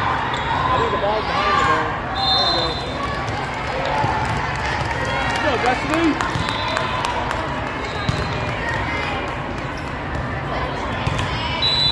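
Girls' voices call out and chatter in a large echoing gym.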